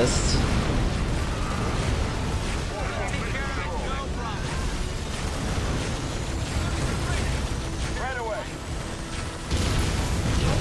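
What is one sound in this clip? Explosions boom with a low rumble.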